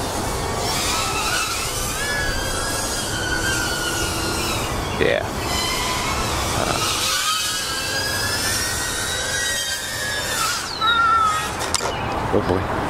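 A small drone's propellers whine and buzz, rising and falling in pitch as it flies.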